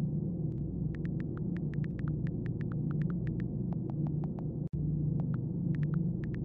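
Phone keyboard clicks tap quickly and unevenly.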